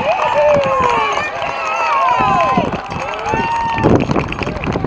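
Young men cheer and shout excitedly outdoors.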